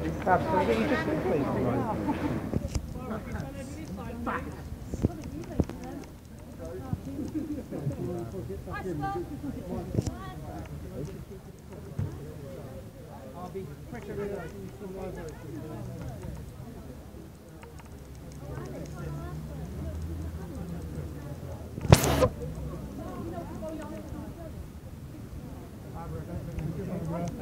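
Several men and women talk at once close by.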